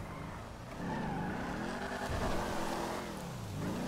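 Tyres skid and crunch on dirt.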